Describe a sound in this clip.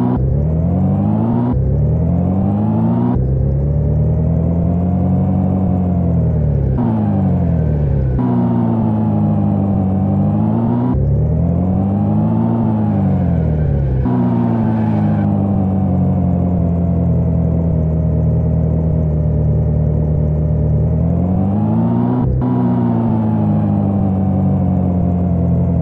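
A car engine hums steadily, its pitch rising and falling again and again.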